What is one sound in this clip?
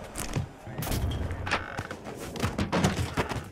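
A body thuds into a wooden crate.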